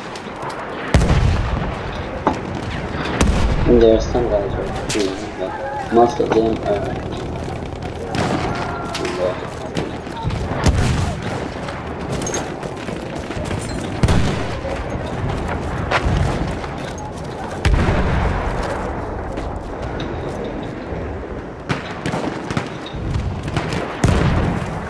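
Heavy gunshots boom again and again, with a short echo.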